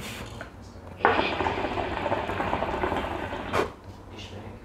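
A hookah bubbles and gurgles steadily.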